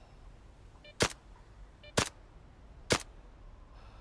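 Single gunshots crack at a steady pace.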